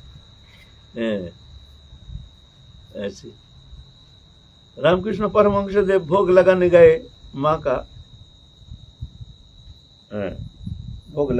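An elderly man speaks calmly and cheerfully close by, with pauses.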